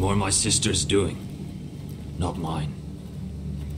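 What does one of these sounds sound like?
A man speaks calmly and closely.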